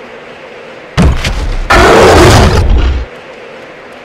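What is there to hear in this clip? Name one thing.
A large beast roars loudly.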